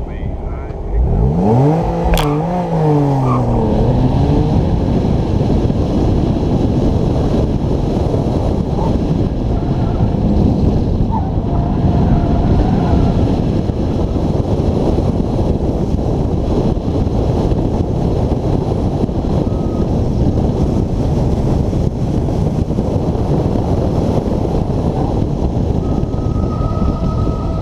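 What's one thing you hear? A car engine revs hard and rises in pitch as the car speeds up.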